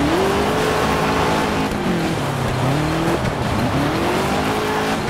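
Tyres skid and crunch over loose dirt.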